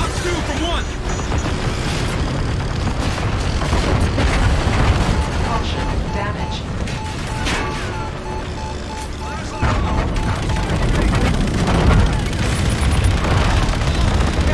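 Spaceship cannons fire in bursts.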